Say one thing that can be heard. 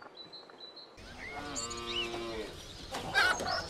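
Cows moo across an open field.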